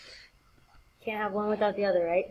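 A young woman speaks close to a computer microphone.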